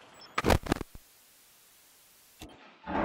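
Electronic static hisses and buzzes.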